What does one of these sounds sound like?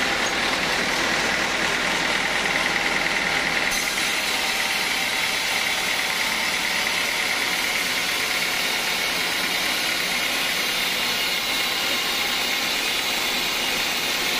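A band saw cuts through a log with a loud, steady whine.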